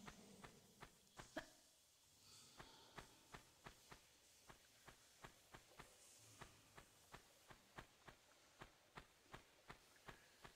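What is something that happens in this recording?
Footsteps run quickly and evenly over gravelly ground.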